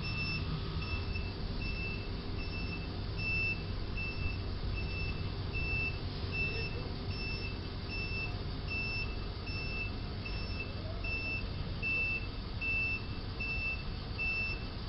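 A box truck's engine rumbles low as the truck slowly reverses.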